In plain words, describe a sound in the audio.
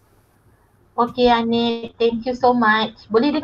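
A woman speaks calmly through an online call.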